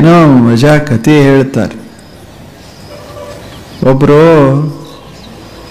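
An elderly man speaks slowly and calmly into a microphone, with pauses between phrases.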